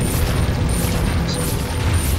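A chime rings out as treasure is collected.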